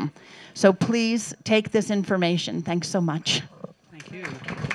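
An elderly woman speaks with animation, close by.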